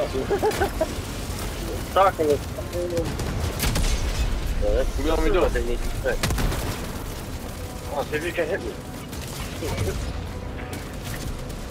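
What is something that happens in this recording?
Gunfire cracks in short bursts.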